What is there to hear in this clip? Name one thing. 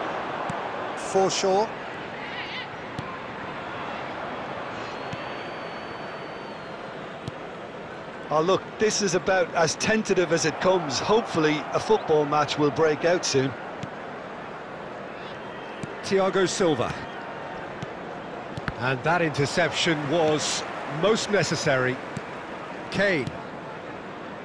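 A large stadium crowd murmurs steadily in the background.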